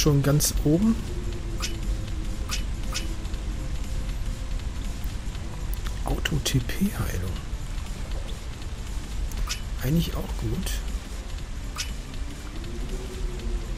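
Short soft menu clicks sound as selections change.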